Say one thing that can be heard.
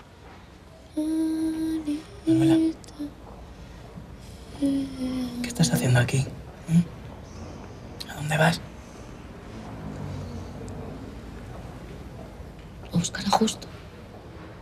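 A man speaks quietly and intently close by.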